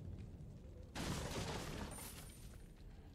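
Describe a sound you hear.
A wooden crate smashes apart.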